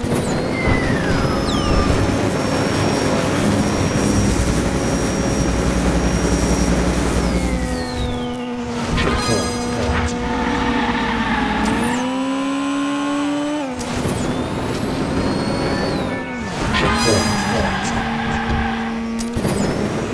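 A toy race car's engine whines steadily, rising and falling in pitch.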